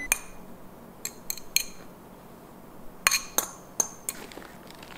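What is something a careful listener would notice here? Food is scraped off a plate with soft knocks.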